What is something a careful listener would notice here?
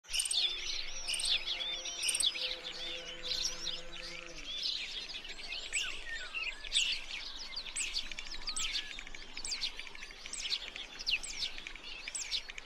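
Small birds chirp and trill busily nearby.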